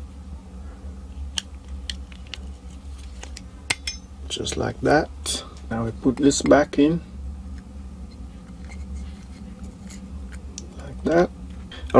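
Small metal parts click and scrape as they are handled.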